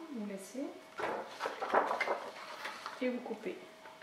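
Stiff card rustles and scrapes as it is handled.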